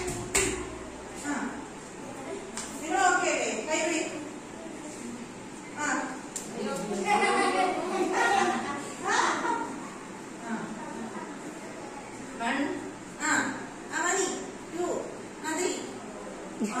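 Children's voices chatter and call out nearby.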